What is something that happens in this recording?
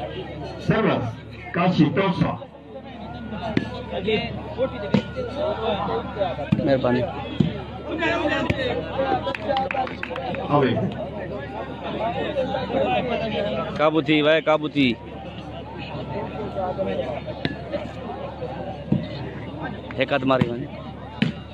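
A crowd of men chatters and shouts outdoors.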